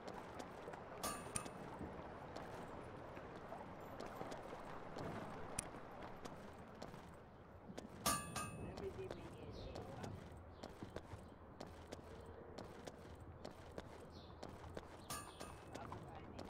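Chimes ring out.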